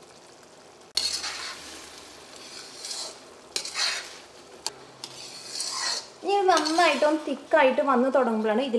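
A spoon stirs and scrapes in a metal pan.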